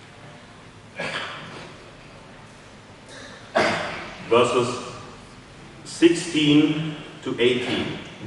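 A man reads aloud into a microphone in a large echoing hall.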